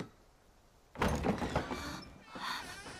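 A wooden sliding door rattles open.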